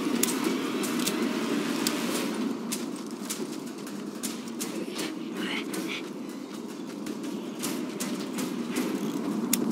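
Footsteps patter on hard ground.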